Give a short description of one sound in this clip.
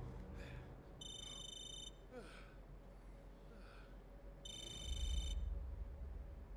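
A phone rings with short electronic tones close by.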